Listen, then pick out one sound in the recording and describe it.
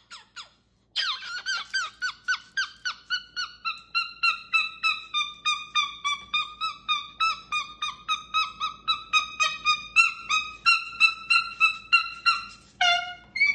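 A cockatoo chatters in a long run of fast, repeated squeaky calls.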